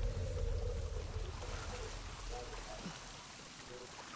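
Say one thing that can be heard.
Water sloshes and splashes as someone wades through it.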